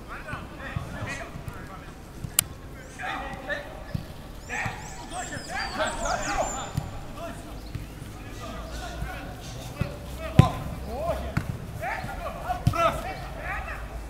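Footballs are kicked with dull thuds.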